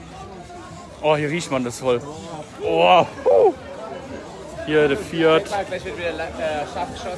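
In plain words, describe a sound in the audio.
A young man talks loudly close by.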